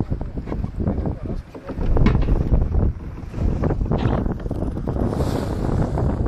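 Water splashes and rushes against a sailing boat's hull.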